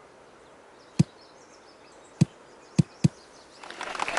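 A golf ball bounces and thuds on the ground a few times.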